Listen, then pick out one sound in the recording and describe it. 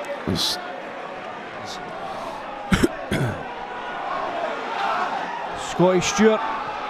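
A crowd murmurs outdoors in a large open ground.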